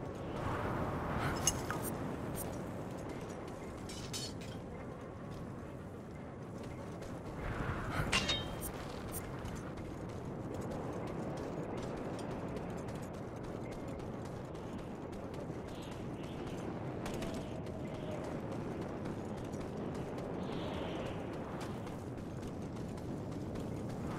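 Footsteps crunch on gravel as a man runs.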